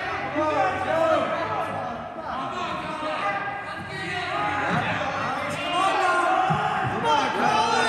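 Men and women chatter in a large echoing hall.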